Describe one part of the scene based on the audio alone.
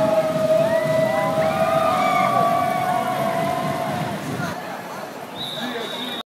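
A crowd of onlookers chatters and cheers outdoors.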